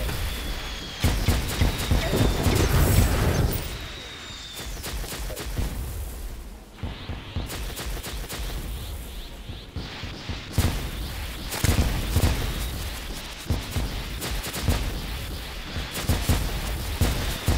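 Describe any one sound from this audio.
Magic bolts fire and burst with sharp crackling blasts.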